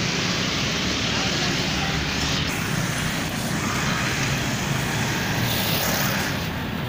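Motorbike engines buzz past close by.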